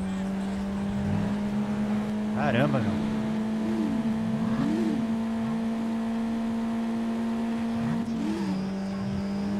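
A car engine hums steadily at speed.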